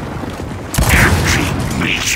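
An explosion bursts with crackling sparks.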